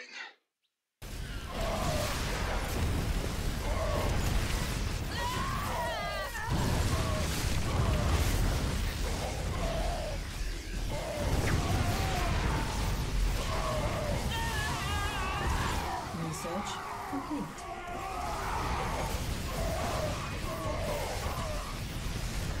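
Rapid gunfire and blasts rattle through a loud battle.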